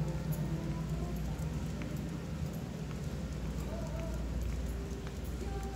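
A dog pants.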